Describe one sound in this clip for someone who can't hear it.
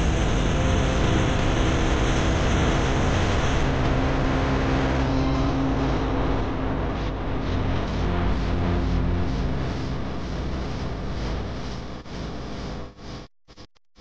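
Wind rushes loudly and steadily past the microphone.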